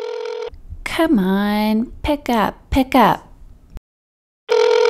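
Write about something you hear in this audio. A woman talks in a high, playful voice on a phone.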